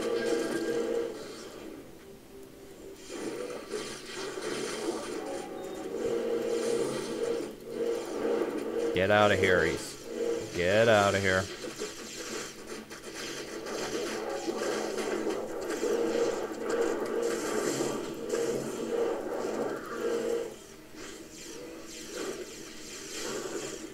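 Magic fire roars and crackles in bursts.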